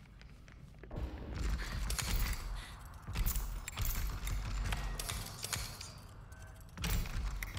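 A door lock rattles and clicks as it is worked at.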